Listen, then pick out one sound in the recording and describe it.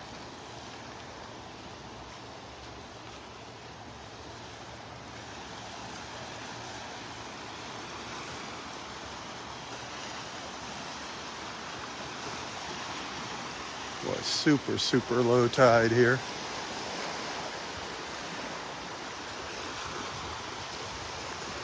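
Small waves wash gently onto a sandy shore outdoors.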